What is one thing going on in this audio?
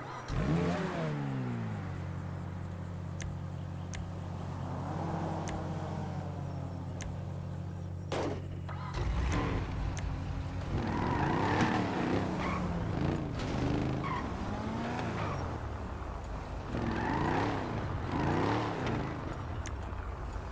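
A car engine revs up and down sharply.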